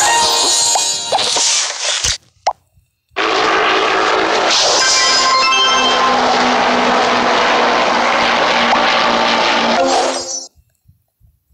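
Cheerful game music plays.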